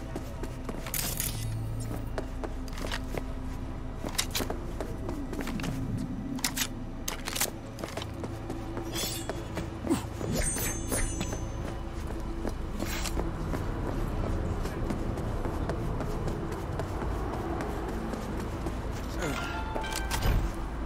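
Game music with a low pulsing beat plays throughout.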